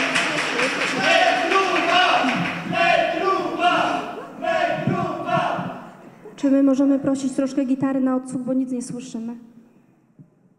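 A group of young women sings together into microphones in a large hall.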